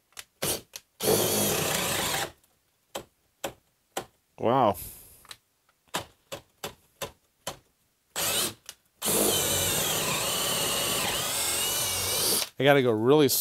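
A power drill whirs as it bores into wood.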